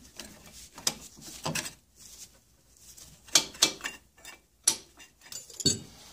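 Metal tools clink and clatter against a metal part.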